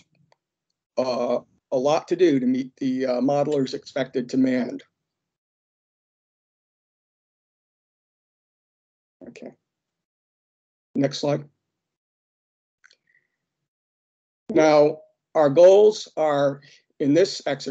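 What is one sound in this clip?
A man speaks calmly over an online call, pausing now and then.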